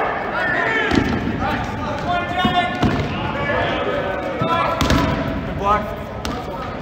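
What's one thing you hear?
A rubber ball thuds against the floor.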